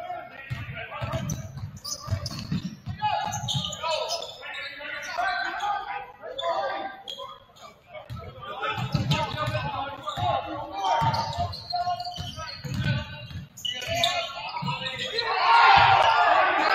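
A basketball bounces repeatedly on a hardwood floor.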